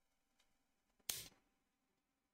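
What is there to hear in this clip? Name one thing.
A game piece clicks down onto a board.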